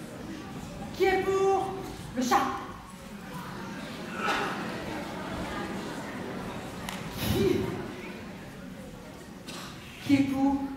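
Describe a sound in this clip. A woman speaks loudly in a large echoing hall.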